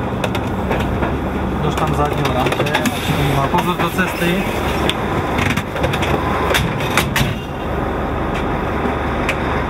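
A heavy truck engine rumbles steadily close by.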